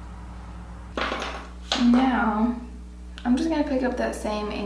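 A young woman speaks calmly close to a microphone.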